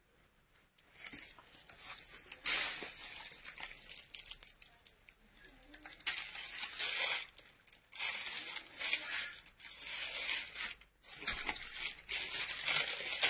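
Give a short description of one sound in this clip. Clothes rustle as they are handled and shaken.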